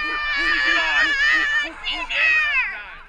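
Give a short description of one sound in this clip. A young man shouts excitedly close by.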